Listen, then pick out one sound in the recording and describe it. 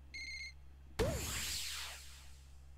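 A cartoonish pop and whoosh sounds as a plant bursts out of the ground.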